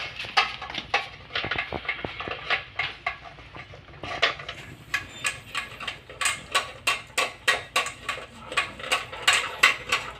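A metal chain clinks against a metal bowl.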